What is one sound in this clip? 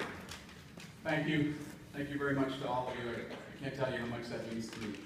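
A young man speaks calmly into a microphone over loudspeakers in a large hall.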